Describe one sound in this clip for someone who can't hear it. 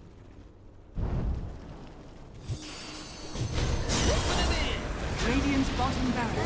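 Game spell effects crackle and boom in a busy fight.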